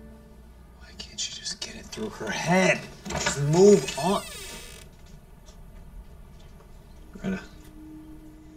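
A young man speaks softly and close by.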